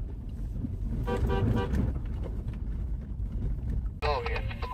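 Vehicle horns honk in short blasts nearby.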